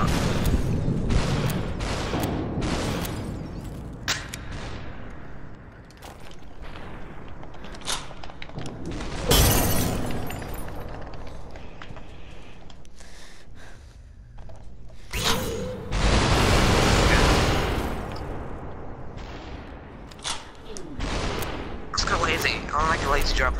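Guns fire in short sharp bursts.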